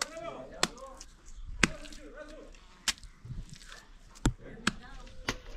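A small trowel scrapes and taps against wet cement.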